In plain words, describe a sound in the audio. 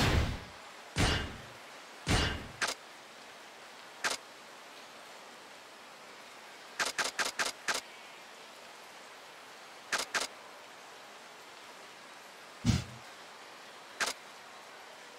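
Short menu clicks sound in quick bursts.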